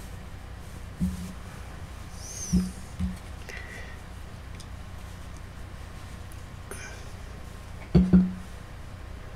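Small objects knock against a table.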